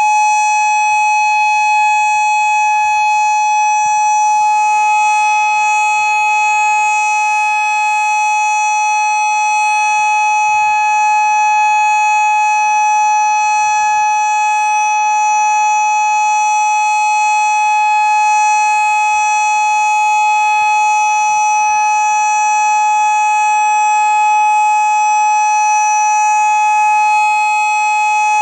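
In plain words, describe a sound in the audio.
An electronic outdoor warning siren sounds a steady tone with a hiss.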